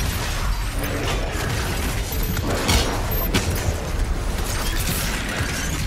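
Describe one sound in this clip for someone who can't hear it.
Energy beams hiss and zap.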